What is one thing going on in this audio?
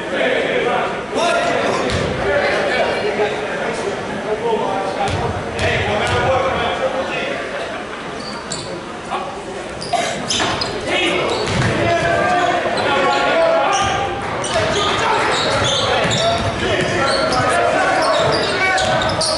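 A crowd chatters and cheers in an echoing gym.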